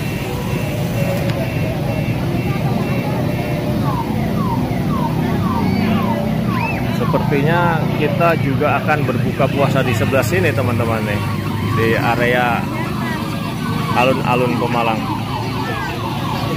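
A toy ride-on car plays a chirpy electronic tune.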